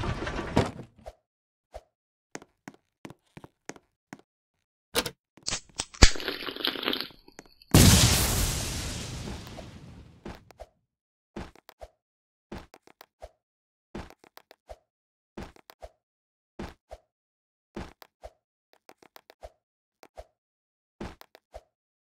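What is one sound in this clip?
Light footsteps tap steadily on a hard floor.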